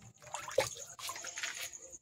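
Water pours from a tap into a basin.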